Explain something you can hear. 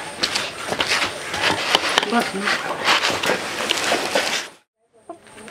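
A hand drum is beaten in a quick rhythm.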